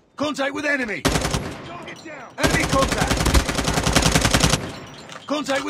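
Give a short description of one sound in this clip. A rifle fires rapid automatic bursts at close range.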